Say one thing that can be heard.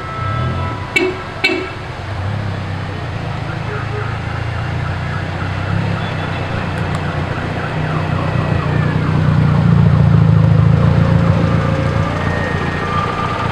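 Old car engines rumble as cars roll slowly past.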